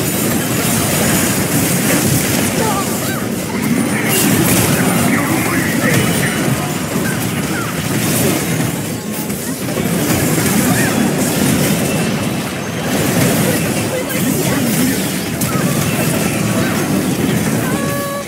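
Spell blasts and hits crackle and boom in a fast game battle.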